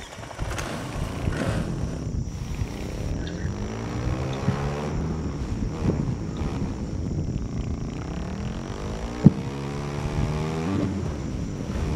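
A motorbike engine revs, rising and falling in pitch.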